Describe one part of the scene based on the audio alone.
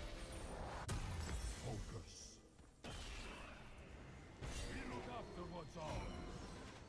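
Magical spell effects whoosh and crackle.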